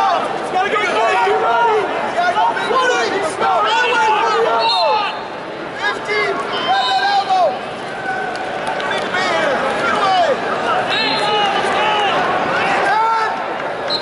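Shoes squeak on a wrestling mat.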